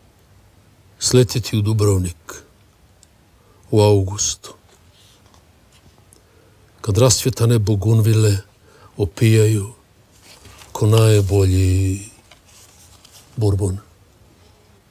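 An elderly man reads aloud slowly and calmly, close by, with long pauses.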